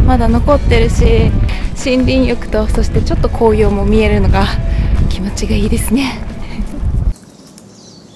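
A young woman talks cheerfully and laughs close to a microphone.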